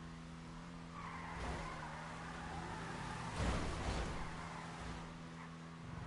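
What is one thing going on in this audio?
Tyres screech on concrete as a race car drifts.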